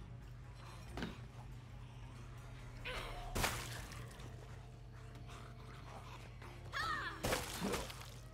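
A blade strikes flesh with heavy, wet thuds.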